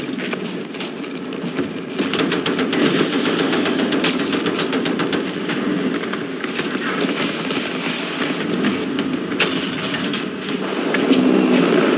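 Explosions boom and crack nearby.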